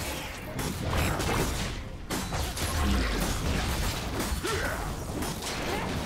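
Game hits land with sharp impact sounds.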